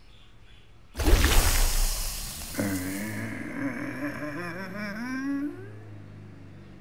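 A bright magical whoosh and shimmer sounds as a plant sprouts.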